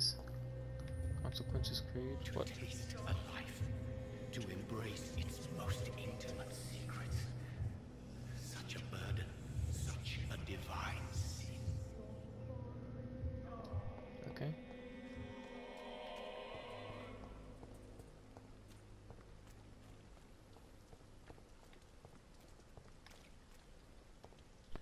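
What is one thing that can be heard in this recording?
Footsteps tap on a hard stone floor.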